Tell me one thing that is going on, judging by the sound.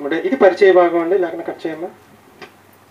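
A young man speaks into a microphone, heard through a loudspeaker.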